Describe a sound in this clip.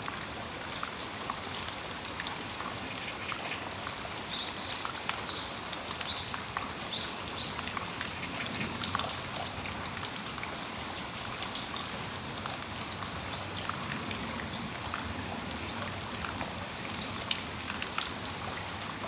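Rain patters steadily on a metal roof and awning.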